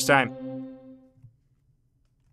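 A short electronic chime rings out with a quick downward sweep and fades.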